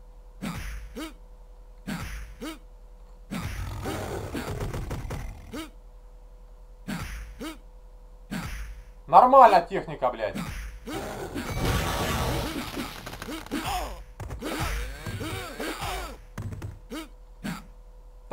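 Punches and kicks thud in a video game.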